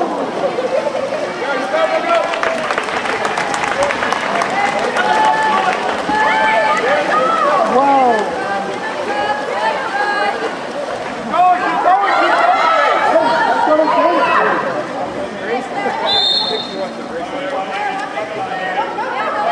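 Swimmers splash water.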